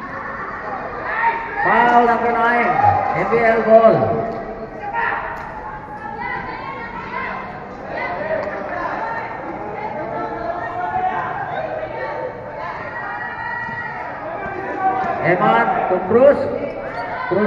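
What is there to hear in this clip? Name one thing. Young players call out to each other as they run.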